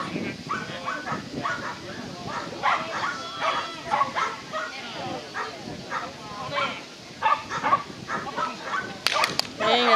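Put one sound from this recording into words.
A man calls out short commands to a dog outdoors.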